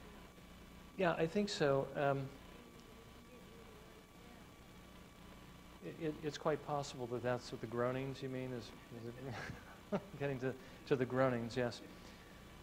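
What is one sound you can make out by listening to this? A middle-aged man speaks calmly into a lapel microphone.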